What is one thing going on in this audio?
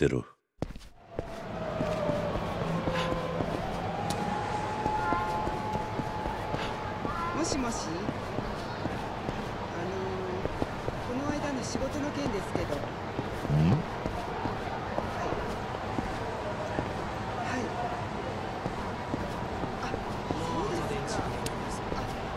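A busy street hums steadily in the background.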